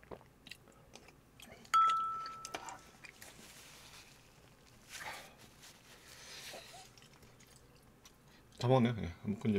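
A young man chews food close to a microphone.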